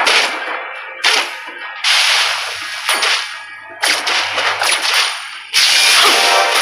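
Fantasy game spells burst and whoosh in quick succession.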